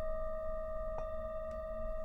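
A bowl is struck lightly, giving a bright ringing chime.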